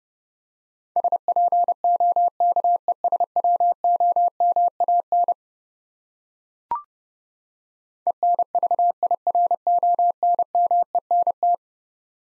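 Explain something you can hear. A telegraph key taps out steady Morse code beeps in quick bursts.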